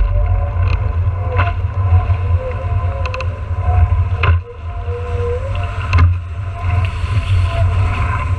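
Strong wind buffets the microphone.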